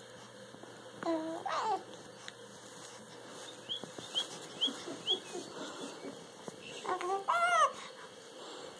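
A baby coos and squeals happily close by.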